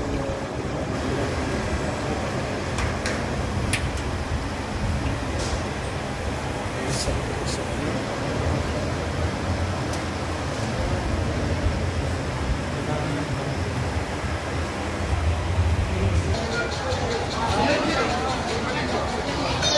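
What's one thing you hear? A crowd of men talks and murmurs all around.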